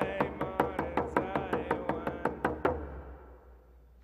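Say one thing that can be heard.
A man beats a hand drum in steady strokes.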